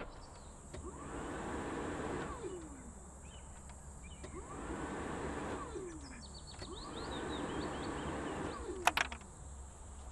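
A vehicle's starter motor cranks the engine several times, whirring and winding down.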